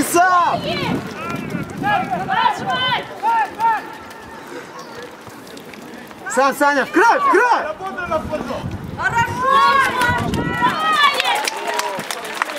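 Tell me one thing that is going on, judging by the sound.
Young men shout loudly to each other across an open field.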